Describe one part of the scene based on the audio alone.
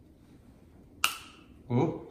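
A small plastic item clicks in a man's hands.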